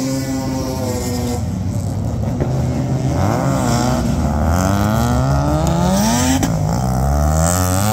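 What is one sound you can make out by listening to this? Another car engine roars and rises in pitch as the car passes by.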